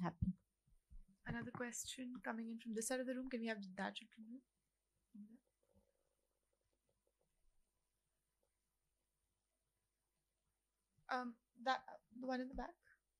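A young woman speaks calmly into a microphone, pausing for a long while.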